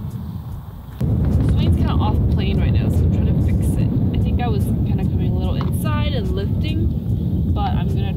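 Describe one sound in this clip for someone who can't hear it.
Wind blusters against the microphone outdoors.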